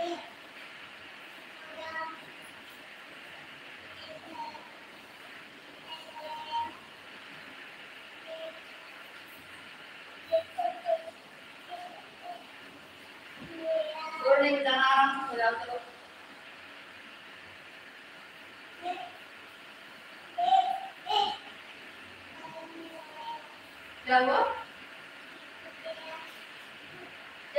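A woman's bare feet shuffle softly on a hard floor.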